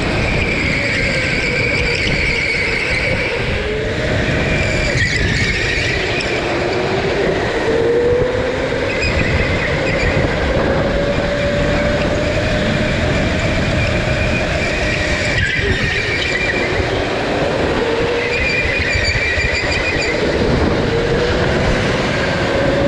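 Wind rushes past.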